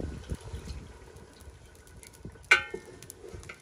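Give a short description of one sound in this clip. A metal pot lid clanks against a metal pot.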